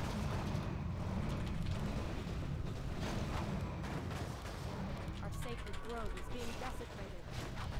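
Fiery blasts whoosh and roar in a video game.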